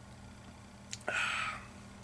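A man exhales loudly after a sip.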